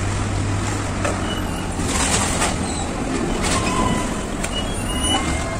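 Metal clanks now and then from cargo cranes at work.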